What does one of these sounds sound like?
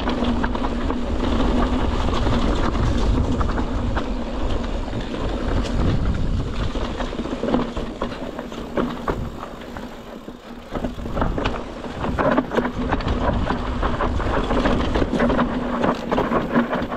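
Bike tyres crunch and rattle over a rocky dirt trail.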